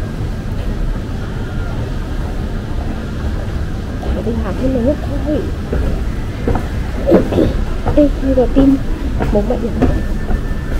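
An escalator hums and rumbles steadily in a large echoing hall.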